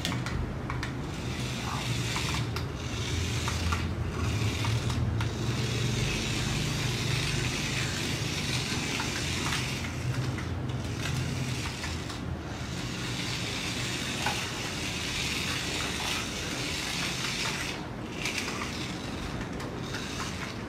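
A small toy car's electric motor whirs and buzzes as it drives about on a hard floor.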